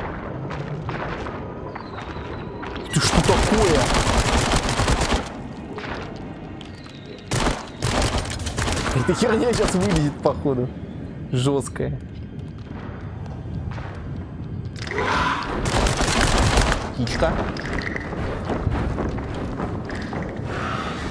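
A man talks and exclaims with animation into a close microphone.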